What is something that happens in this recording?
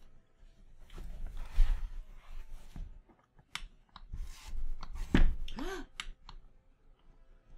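Plastic parts of a chair clunk and rustle as they are handled up close.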